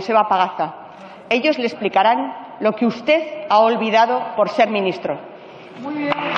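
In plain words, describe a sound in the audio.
A woman speaks firmly into a microphone in a large hall.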